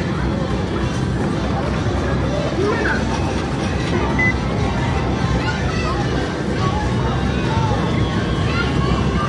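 An arcade game machine plays loud electronic sounds and music.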